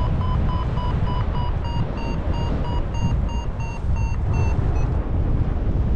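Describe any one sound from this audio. A flight instrument beeps in quick, steady pulses.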